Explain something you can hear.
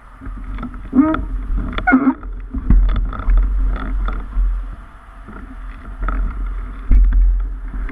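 A bicycle frame rattles and clanks over bumps.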